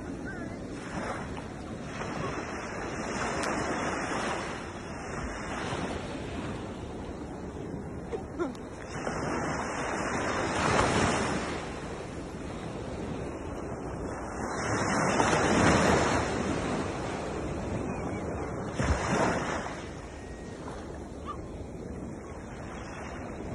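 Small waves wash up and break on a shore, swelling and fading in slow surges.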